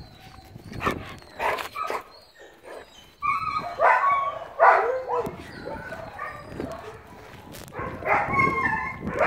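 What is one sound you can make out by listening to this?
A woman talks to a dog in a high, fond voice, close by.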